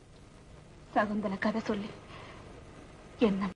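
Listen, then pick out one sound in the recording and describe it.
A young woman answers softly, close by.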